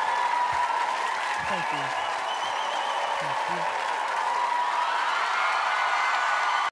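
An electric guitar plays along.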